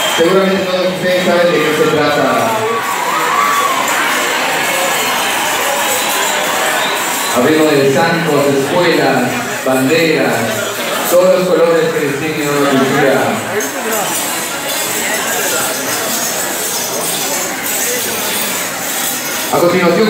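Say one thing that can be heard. Loud music with singing plays over loudspeakers in a large echoing hall.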